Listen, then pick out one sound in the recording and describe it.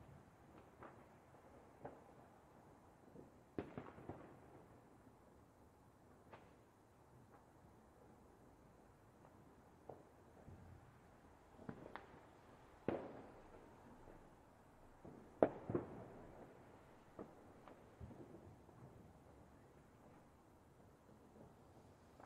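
Fireworks bang and crackle at irregular intervals.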